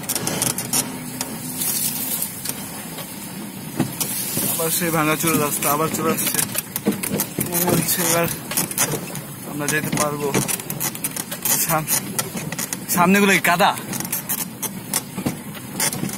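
A vehicle rattles and bumps over a rough dirt track.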